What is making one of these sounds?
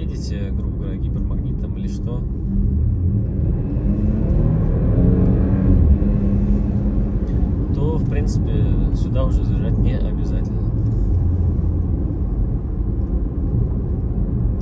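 Tyres roll on an asphalt road.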